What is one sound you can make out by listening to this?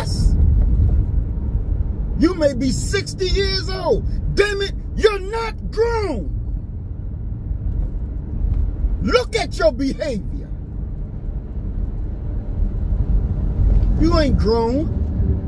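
A car engine and road noise rumble steadily inside a moving car.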